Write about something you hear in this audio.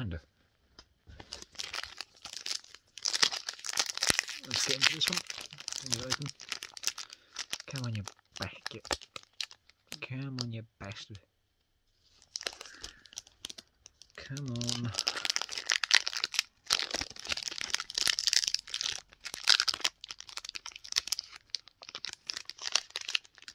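Foil card wrappers crinkle and rustle as hands tear them open.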